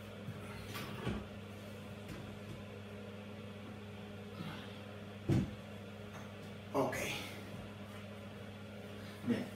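Wooden cabinets knock and bump.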